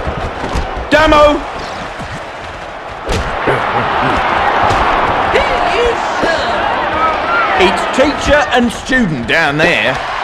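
A football is kicked hard several times.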